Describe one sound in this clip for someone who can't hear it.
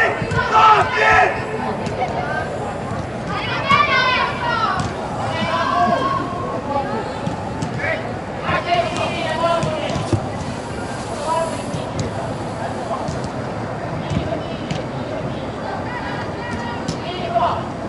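Young women shout and call to each other across a large echoing hall.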